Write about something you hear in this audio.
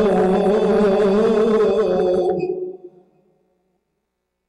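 A man chants a long melodic recitation into a microphone, his voice ringing in a large echoing hall.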